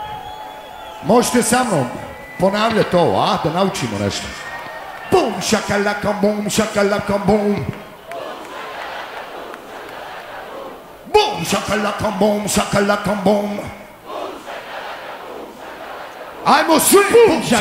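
A man shouts forcefully into a microphone over loudspeakers.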